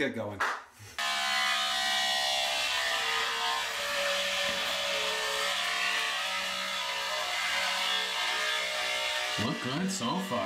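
An electric beard trimmer buzzes steadily.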